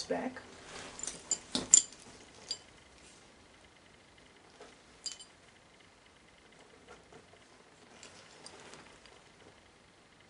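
A bag rustles and its chain clinks as it is handled.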